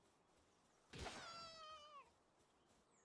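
A small creature lets out a short, high, falling squeal.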